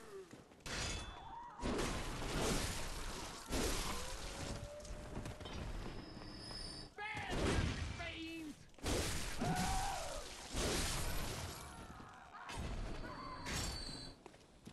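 Loud game combat sounds with whooshing strikes and impacts come in bursts.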